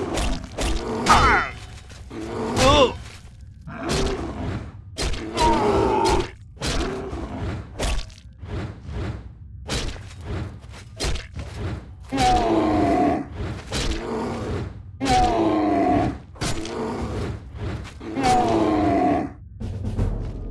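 A monstrous creature roars and grunts in pain.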